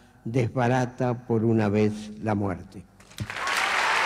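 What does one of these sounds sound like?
An elderly man reads out calmly into a microphone.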